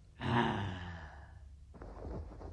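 A man shouts loudly in a gruff voice.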